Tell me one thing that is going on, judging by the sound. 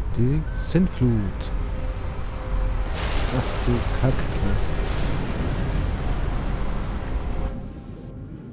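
A huge wave roars in and crashes down.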